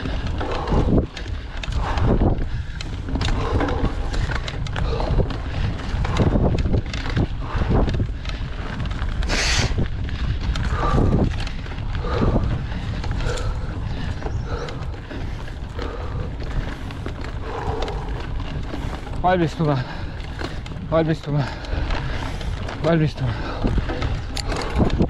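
Bicycle tyres roll and rumble over a bumpy dirt trail.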